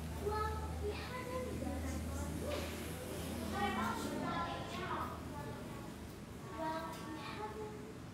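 A young woman rustles paper sheets.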